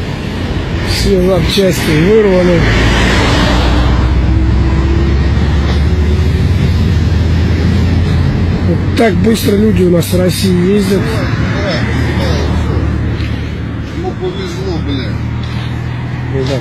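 A man speaks excitedly nearby.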